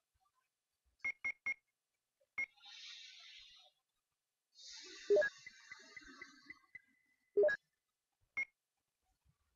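Short electronic beeps sound as menu choices change.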